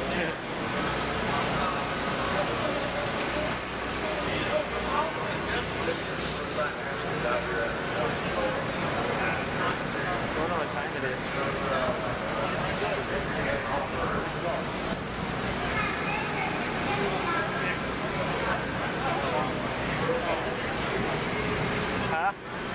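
A crowd of people chatters nearby, outdoors.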